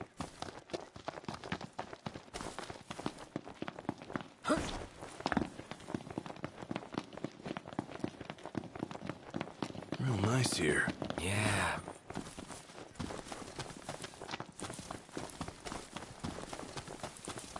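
Quick footsteps run over grass and pavement.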